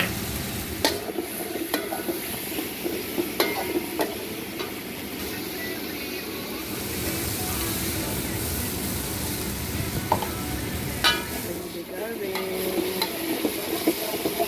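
A metal spatula scrapes and clacks against a pan.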